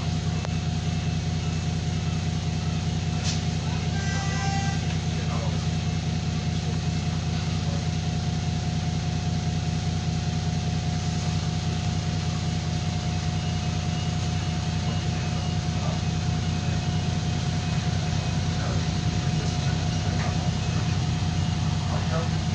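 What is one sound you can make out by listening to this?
A diesel bus engine idles, heard from inside the bus.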